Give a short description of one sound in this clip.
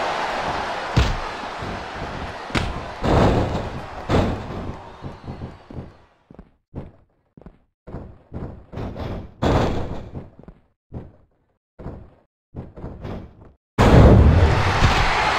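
Heavy bodies thud onto a wrestling mat.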